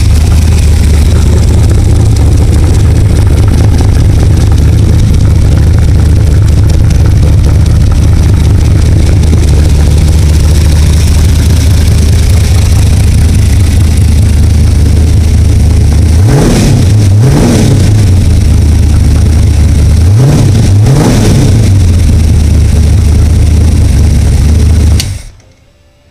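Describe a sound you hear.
A large engine idles with a loud, steady rumble.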